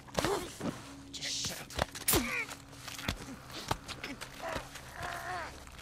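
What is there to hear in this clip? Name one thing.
A knife stabs with dull thuds.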